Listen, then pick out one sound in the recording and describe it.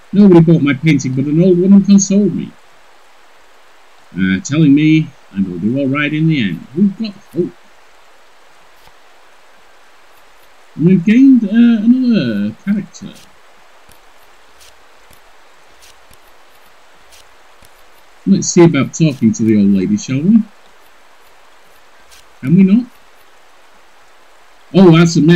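An elderly man talks calmly into a close microphone, in bursts with pauses.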